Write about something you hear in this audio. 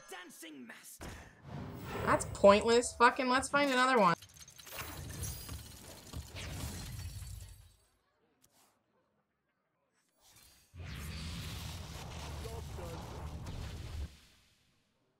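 A magical spell effect whooshes and shimmers.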